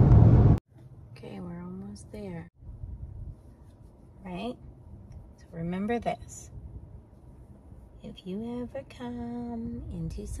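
A young woman talks softly and close by.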